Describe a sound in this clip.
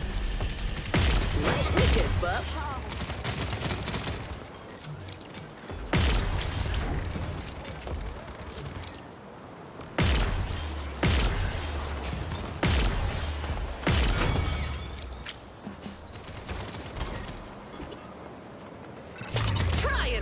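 Sniper shots blast out with sharp booms.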